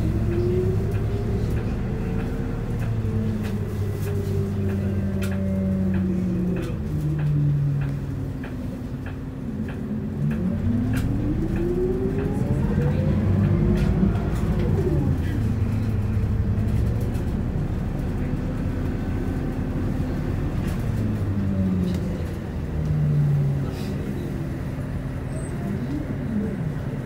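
A bus engine hums and whines as it pulls away and speeds up.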